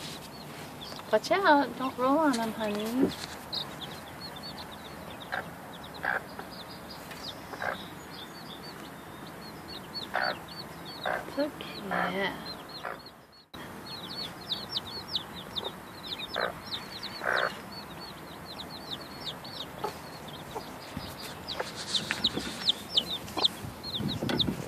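Chicks peep rapidly in high, shrill chirps.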